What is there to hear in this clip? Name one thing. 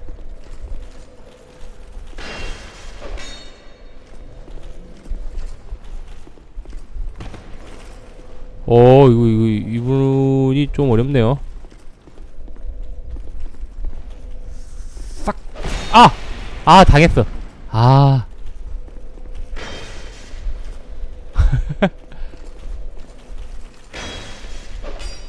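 Metal weapons clash and strike in sharp blows.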